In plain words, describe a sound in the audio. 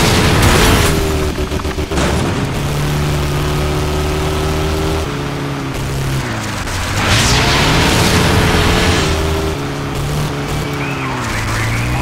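A buggy engine revs and drones, shifting pitch as it speeds up and slows.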